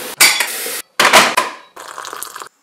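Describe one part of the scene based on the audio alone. A kettle switch clicks.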